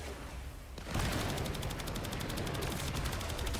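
Electric sparks buzz and crackle.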